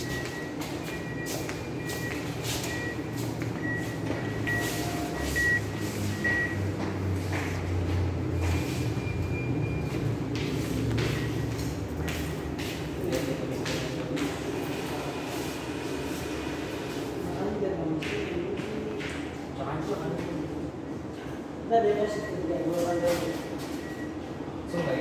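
A machine beeps in short, repeated high tones.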